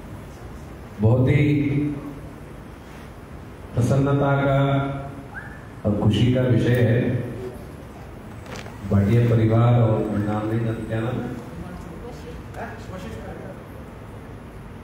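An elderly man speaks calmly into a microphone through a loudspeaker, in phrases with pauses.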